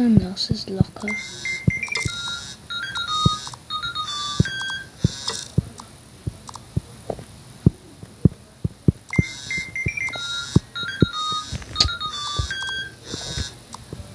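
A light, cheerful tune plays in short bursts.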